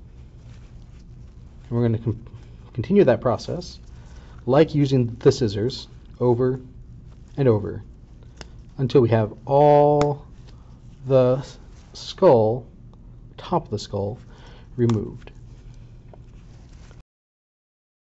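Scissors snip through soft tissue.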